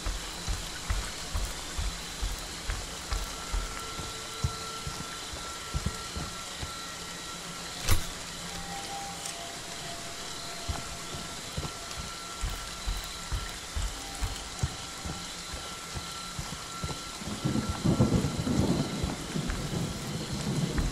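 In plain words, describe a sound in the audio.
Heavy footsteps thud steadily on soft ground.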